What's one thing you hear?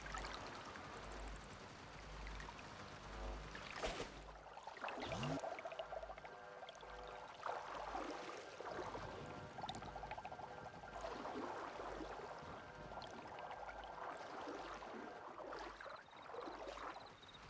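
Water laps and splashes softly.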